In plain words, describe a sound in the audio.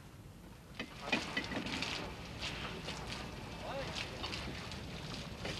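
Water splashes against the hull.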